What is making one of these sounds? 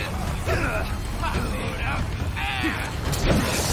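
Bodies scuffle and thud in a close struggle.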